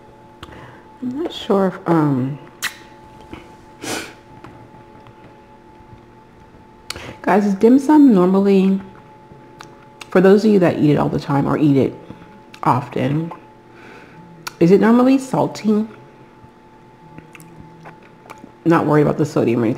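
A woman talks calmly and close to a microphone.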